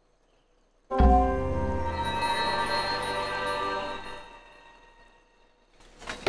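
A computer game plays a short musical fanfare.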